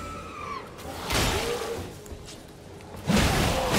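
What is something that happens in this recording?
A sword clashes in a sudden burst of combat.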